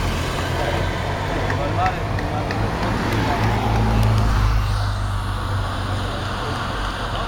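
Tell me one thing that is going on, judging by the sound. A motorcycle engine rumbles close by and passes.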